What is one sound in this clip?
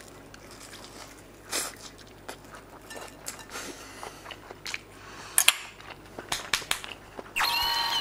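A middle-aged man chews and slurps food noisily.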